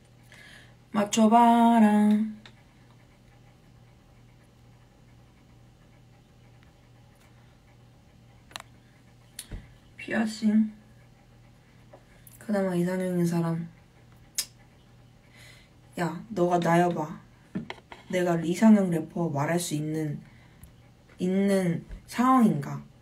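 A young woman talks calmly in short bursts, close to the microphone.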